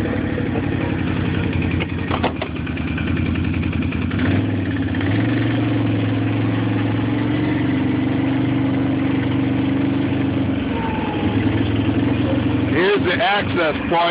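A small engine hums steadily while driving over snow.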